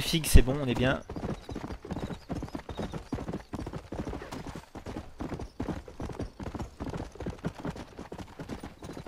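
A horse gallops, its hooves pounding on a dirt track.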